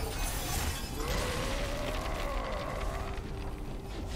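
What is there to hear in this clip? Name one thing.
A shimmering magical tone rings out and wavers.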